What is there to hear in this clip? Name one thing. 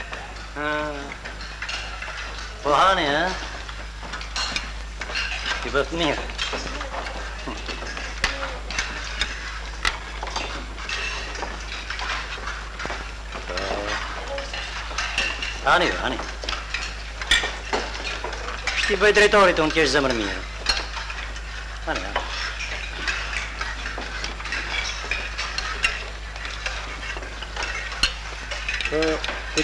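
A middle-aged man speaks nearby.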